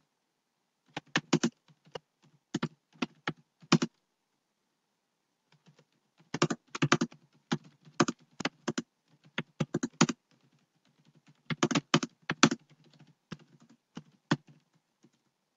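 Keyboard keys click in quick bursts of typing.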